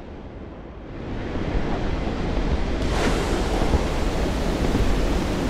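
Wind rushes loudly past a diving plane.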